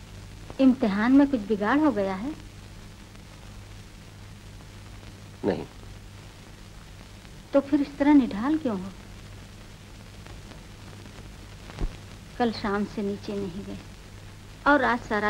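An elderly woman speaks in short, emotional phrases close by.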